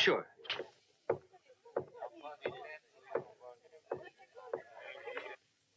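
Boots thud on a wooden floor as a man walks.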